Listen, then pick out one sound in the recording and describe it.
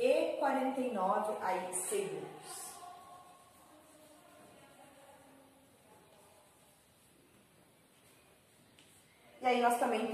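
A young woman speaks clearly, explaining at a steady pace.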